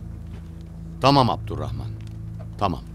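An elderly man speaks with animation, close by.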